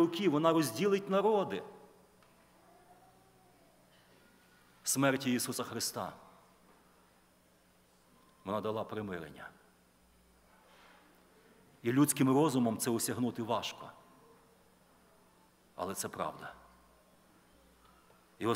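A middle-aged man speaks with feeling into a microphone, in short phrases with long pauses, in a room with a slight echo.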